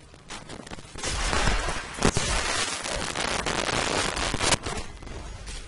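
Magic blasts crackle and whoosh in bursts.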